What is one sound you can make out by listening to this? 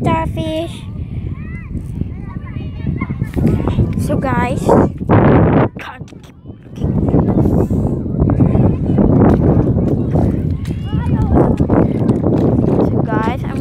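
Shallow water splashes and sloshes underfoot.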